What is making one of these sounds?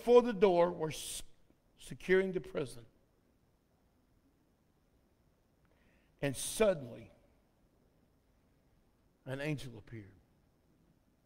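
A man speaks slowly through a microphone in short phrases with long pauses, echoing in a large hall.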